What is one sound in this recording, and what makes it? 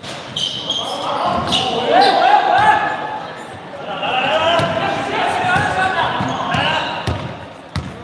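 Young men shout and call out across an echoing hall.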